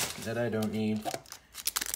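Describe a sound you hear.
Cards scrape against the inside of a box.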